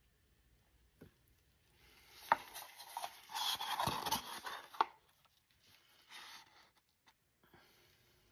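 A wooden stick scrapes and taps against a plastic cup.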